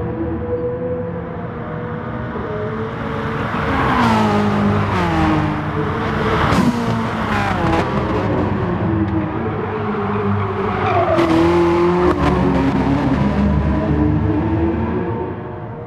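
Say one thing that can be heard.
A racing car engine roars and revs through gear changes.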